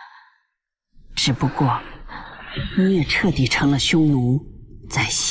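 A man speaks in a low, stern voice, close by.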